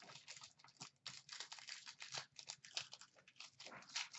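A plastic wrapper crinkles and tears.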